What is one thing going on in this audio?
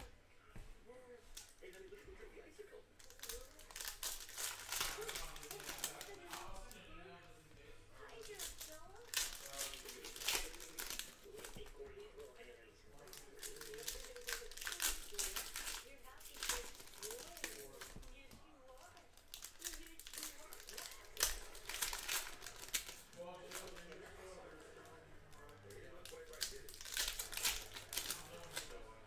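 Foil card packs crinkle and rustle as they are torn open.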